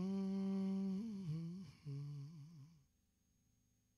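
A man sings a long held note into a microphone, ending with a wavering vibrato.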